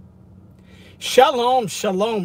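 A man speaks loudly and animatedly, close by.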